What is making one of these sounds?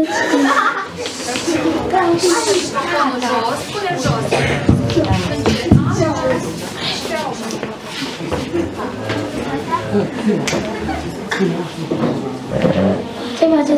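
A young boy speaks into a microphone, heard over a loudspeaker in an echoing room.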